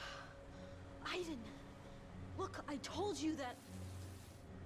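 A young woman speaks quietly and wearily.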